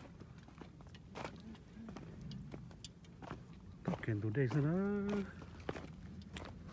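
Footsteps crunch and clatter on loose stones.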